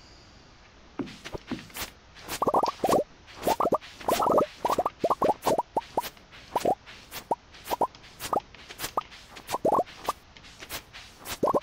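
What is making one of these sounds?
Short, bright popping plinks sound quickly one after another as crops are picked.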